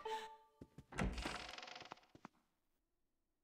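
A heavy wooden door swings open with a rumble.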